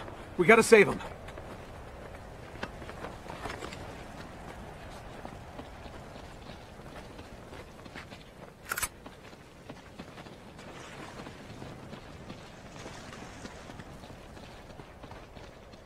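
Footsteps run over gravel and snow.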